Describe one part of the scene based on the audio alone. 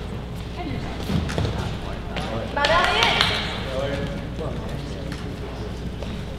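Wrestlers' feet thump and shuffle on a mat in a large echoing gym.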